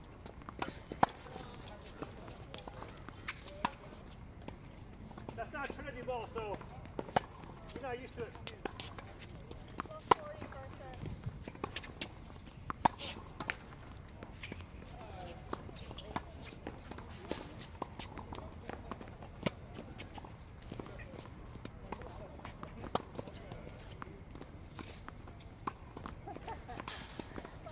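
Tennis rackets strike a ball with sharp pops, back and forth.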